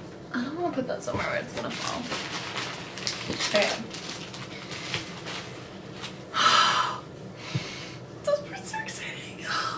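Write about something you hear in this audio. Cardboard and plastic packaging rustles and crinkles.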